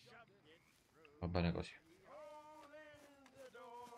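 Footsteps tread softly on grass.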